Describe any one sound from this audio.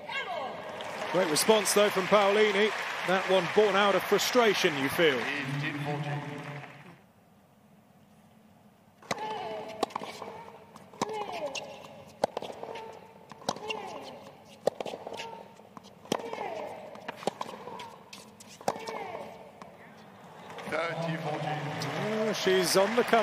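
A crowd cheers and applauds in a large arena.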